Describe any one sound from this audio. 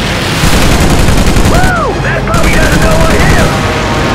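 A shell explodes with a loud boom.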